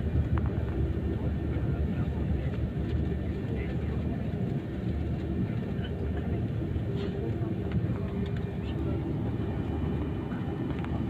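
A jet airliner's engines rumble low and steadily from inside the cabin as it taxis.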